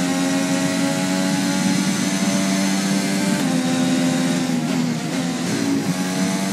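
A racing car engine screams at high revs.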